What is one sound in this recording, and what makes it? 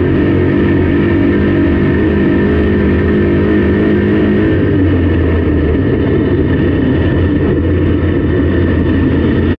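A race car engine roars loudly up close, its pitch rising and falling.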